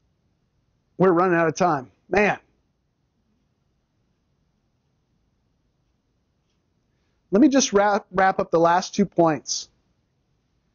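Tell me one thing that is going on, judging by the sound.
A man speaks calmly through a microphone, in short bursts with long pauses.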